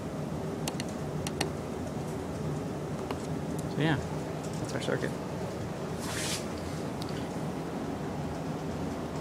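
A small motor hums steadily as a fan spins.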